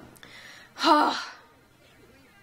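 A young woman sighs loudly.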